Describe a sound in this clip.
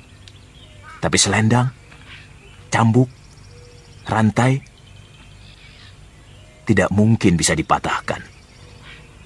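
An elderly man speaks slowly and earnestly, close by.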